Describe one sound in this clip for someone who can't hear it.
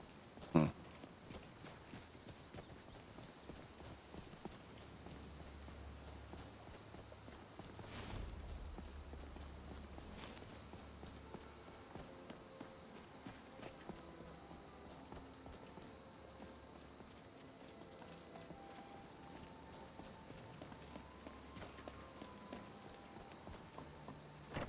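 Footsteps crunch steadily on a stone path.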